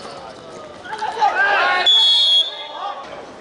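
Spectators cheer and shout from the sidelines.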